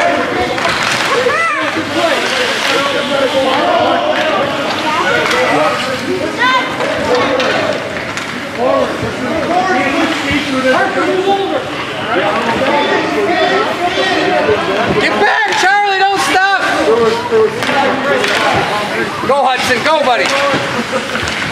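Children shout during the game.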